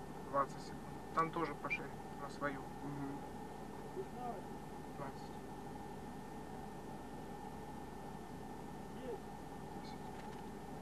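A car engine idles steadily, heard from inside the car.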